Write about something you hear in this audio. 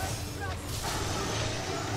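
A magic blast explodes with a burst of debris.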